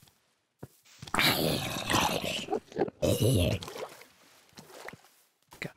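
A zombie groans low and hoarse.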